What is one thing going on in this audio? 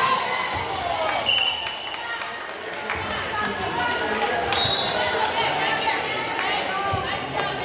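Many young girls chatter and call out in a large echoing gym.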